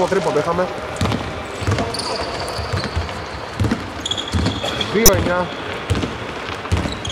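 A basketball thuds as it bounces on the floor.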